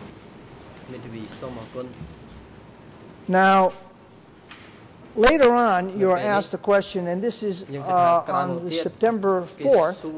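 A man speaks calmly and formally into a microphone.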